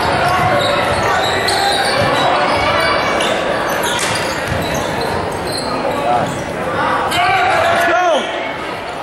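A crowd cheers and chatters in a large echoing gym.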